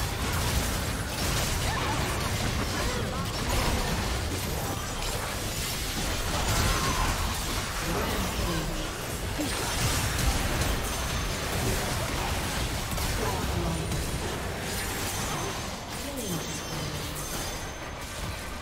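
Game spell effects crackle and boom during a battle.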